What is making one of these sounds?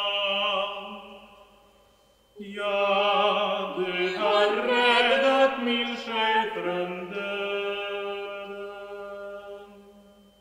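A man sings in a deep voice.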